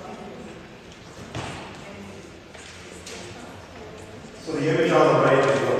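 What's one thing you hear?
A man speaks calmly in a large hall, quietly at first and then loud and close.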